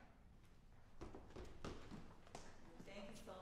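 Footsteps thud across a wooden stage.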